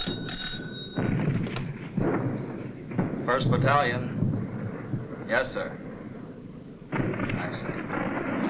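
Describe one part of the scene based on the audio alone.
A man speaks on a telephone, close by.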